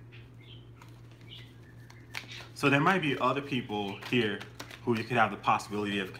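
Cards shuffle and tap softly.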